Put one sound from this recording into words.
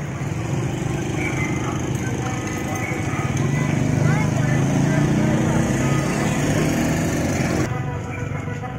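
Motorbikes ride past with buzzing engines.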